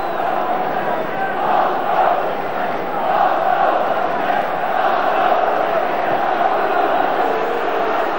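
A large stadium crowd murmurs and roars in a steady wash.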